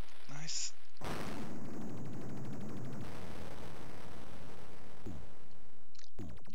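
A building crumbles and collapses with a rumbling crash.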